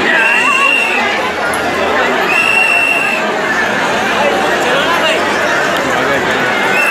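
A large crowd shouts and chatters loudly outdoors.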